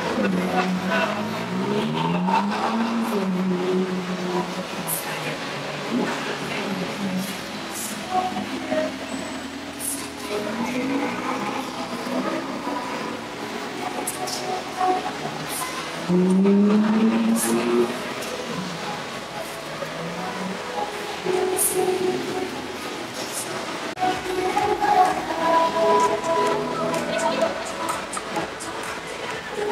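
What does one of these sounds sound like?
Sports car engines rev and rumble as the cars pull slowly past.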